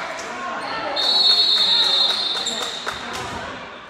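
A referee's whistle blows a long shrill blast.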